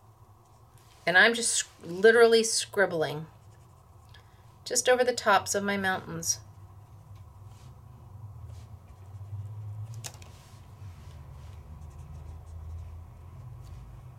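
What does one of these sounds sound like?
A felt-tip marker rubs softly across a metal foil card.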